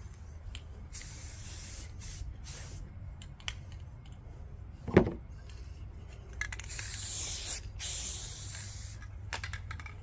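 A spray can hisses in short and long bursts.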